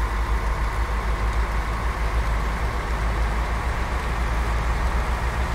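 A bus engine rumbles steadily as it drives along a road.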